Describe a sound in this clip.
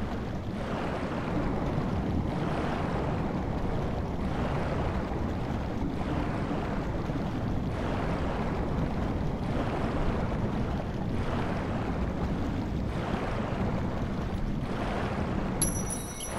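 Water swirls in rhythmic surges as a swimmer strokes.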